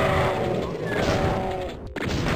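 A fireball bursts with a loud blast.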